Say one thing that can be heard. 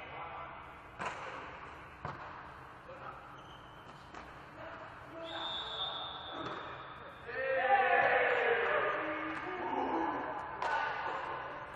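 A volleyball is struck with sharp smacks in a large echoing hall.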